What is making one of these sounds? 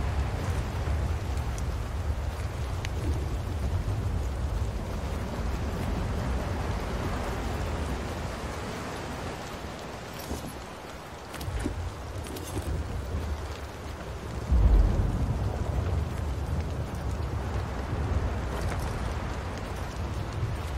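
Waves wash softly against a rocky shore.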